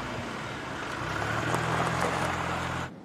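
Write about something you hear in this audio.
A car drives slowly over gravel.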